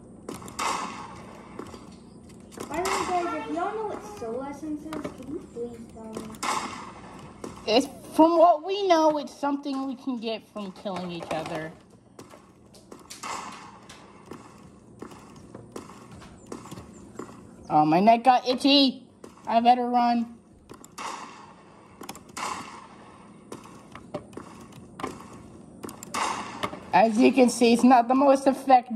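Video game gunshots play from small laptop speakers.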